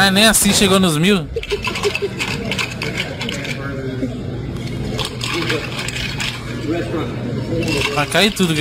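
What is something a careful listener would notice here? Liquid pours into a jug.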